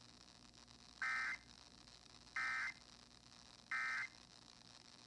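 A radio receiver gives three short, high electronic beeps.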